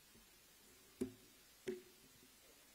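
A microphone thumps as it is handled.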